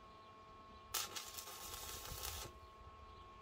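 An electric welding arc crackles and hisses briefly.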